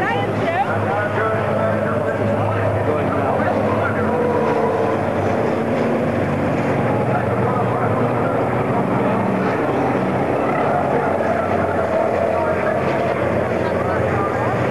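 Diesel racing trucks roar at speed around a circuit.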